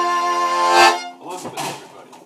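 A fiddle plays a sustained tune close by.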